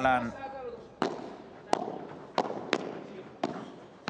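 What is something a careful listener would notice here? A padel ball pops sharply off rackets and glass walls in a rally.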